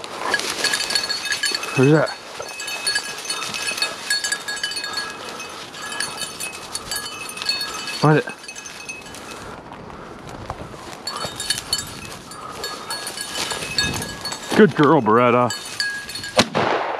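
Dry grass rustles and crackles as dogs push through it.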